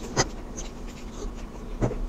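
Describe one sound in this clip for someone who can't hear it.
A young woman slurps a drink.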